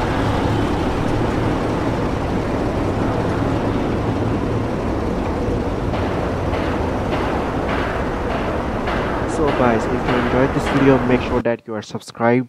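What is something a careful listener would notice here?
An engine drones steadily as a small aircraft hovers.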